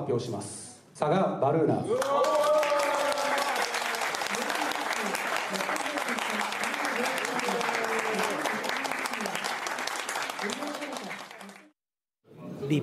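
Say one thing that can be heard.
A crowd cheers loudly and applauds.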